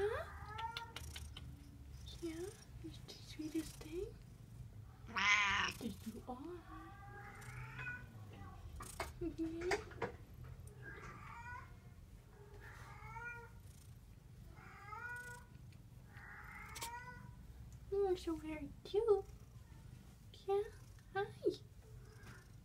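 A cat meows repeatedly, close by.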